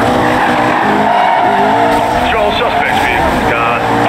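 Tyres screech as a car drifts around a bend.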